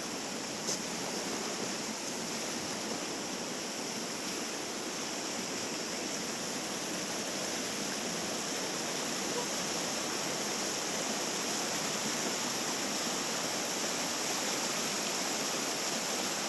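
River rapids rush and roar close by.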